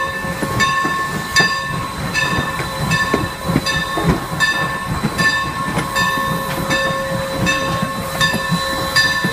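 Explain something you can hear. Train wheels rumble and clank over rails.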